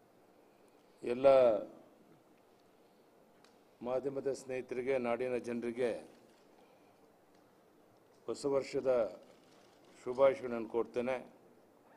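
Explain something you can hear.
An elderly man speaks calmly into microphones, in short bursts with pauses.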